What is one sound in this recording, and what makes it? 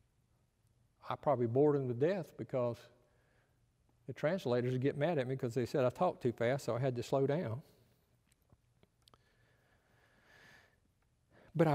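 An older man speaks calmly through a microphone in a large echoing hall.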